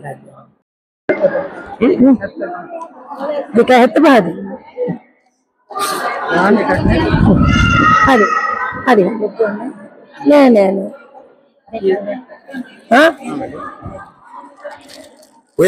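Women chatter in a large echoing hall.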